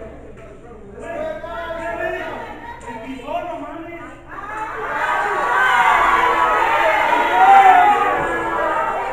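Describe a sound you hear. A crowd of spectators shouts and cheers in an echoing hall, growing louder.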